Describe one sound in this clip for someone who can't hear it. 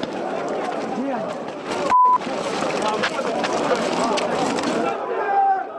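Many feet run on pavement.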